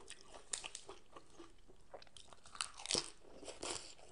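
Crisp lettuce leaves crunch as a woman bites into them.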